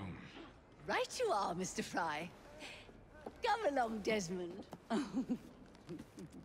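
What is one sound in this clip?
A young woman speaks briskly, close by.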